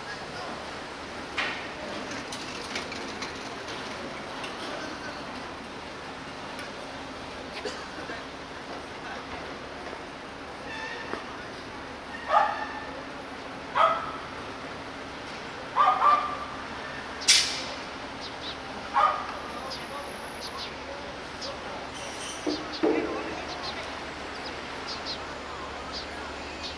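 A bus drives through an intersection.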